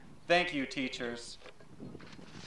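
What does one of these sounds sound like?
A young man speaks into a microphone, his voice carried by a loudspeaker outdoors.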